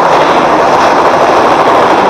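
A helicopter's rotor thuds nearby.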